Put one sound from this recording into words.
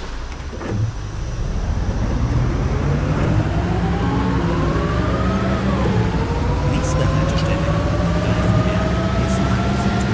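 A bus engine hums and whines higher as the bus speeds up.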